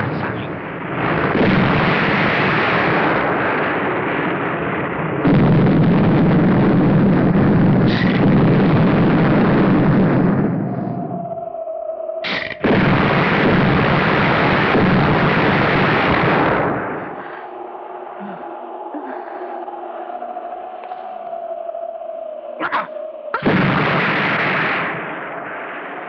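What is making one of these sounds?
Explosions boom and roar one after another.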